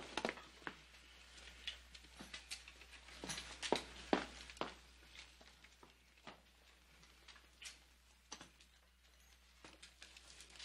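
Boots thud and scuff slowly across a wooden floor.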